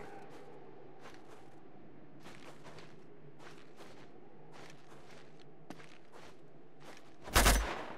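Soft scrapes and taps come from someone climbing a rock wall.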